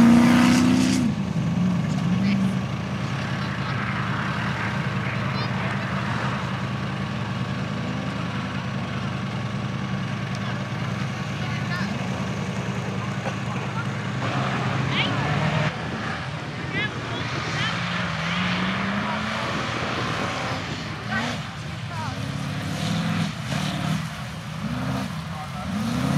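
An off-road truck's engine roars and revs as it drives fast over rough grass.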